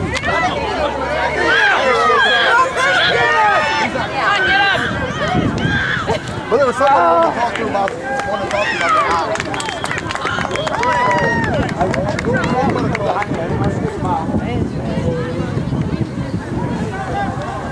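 A crowd of young people shout and chatter across an open field outdoors.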